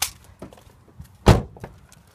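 A car door opens and thuds.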